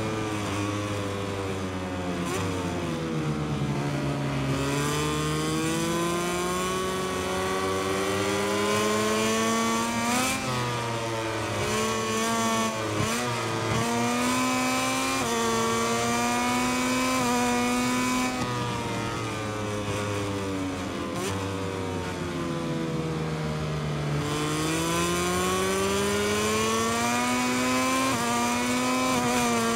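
A motorcycle engine roars loudly, revving up through the gears and dropping as it slows for the bends.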